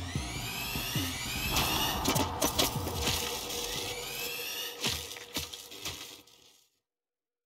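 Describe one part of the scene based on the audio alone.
Sharp bangs and crashes ring out, then fade into silence.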